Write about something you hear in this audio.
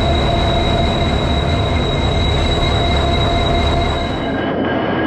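A train rumbles and rattles loudly along the tracks.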